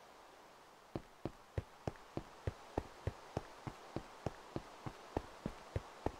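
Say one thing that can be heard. Footsteps thud steadily on hard stone blocks.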